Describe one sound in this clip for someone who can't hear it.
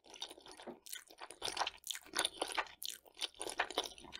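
A woman slurps noodles close to a microphone.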